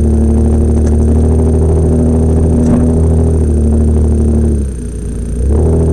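A car engine idles close by with a steady low rumble.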